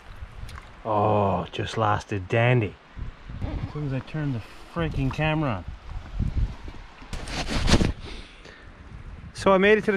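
A man talks close up, calmly.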